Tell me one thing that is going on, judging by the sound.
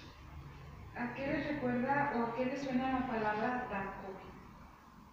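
A woman reads aloud nearby in a calm, clear voice.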